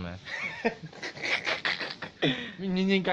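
A young man laughs loudly close to a phone's microphone.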